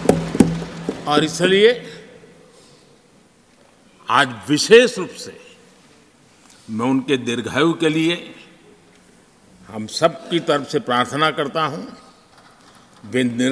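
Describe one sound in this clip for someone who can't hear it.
An elderly man speaks calmly into a microphone in a large hall, with pauses between phrases.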